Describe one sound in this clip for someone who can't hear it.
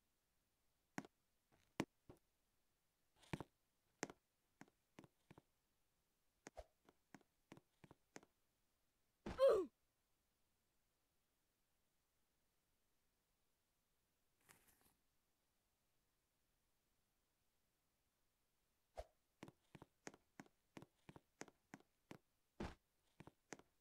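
Quick footsteps tap on hard ground.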